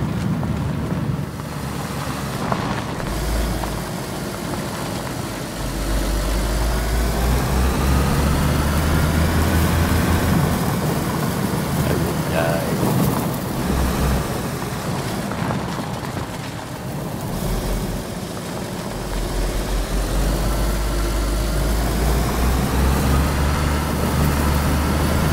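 Tyres roll and splash over wet, rough ground.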